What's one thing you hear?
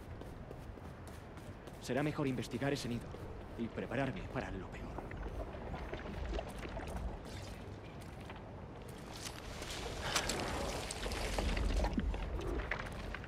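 Footsteps run over uneven ground.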